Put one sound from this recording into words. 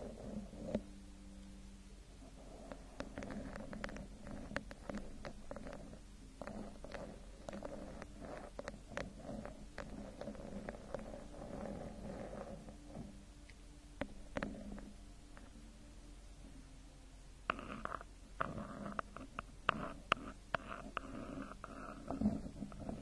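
Fingernails tap and scratch on a microphone cover.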